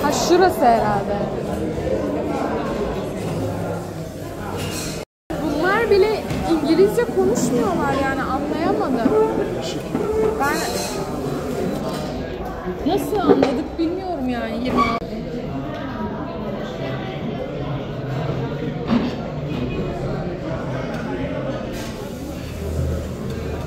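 Many people chatter around a busy room.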